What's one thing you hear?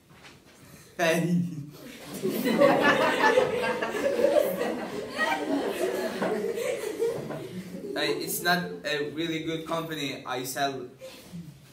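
A teenage boy talks casually and laughs into a phone, close by.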